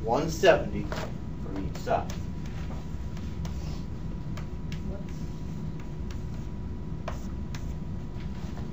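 Chalk taps and scrapes on a blackboard.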